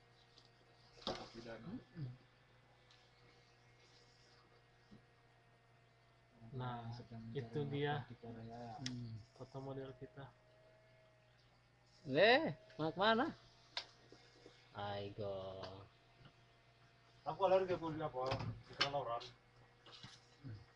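Young men talk and laugh casually close by.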